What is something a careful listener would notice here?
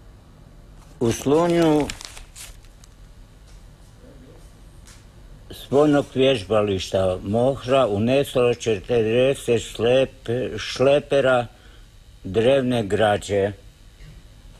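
An elderly man reads aloud calmly into a nearby microphone.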